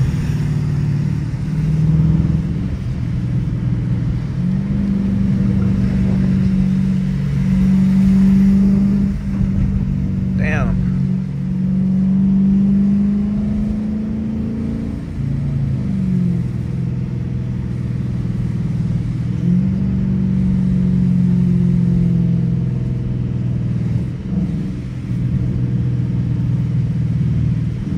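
A Hemi V8 engine hums from inside a car cruising along a street.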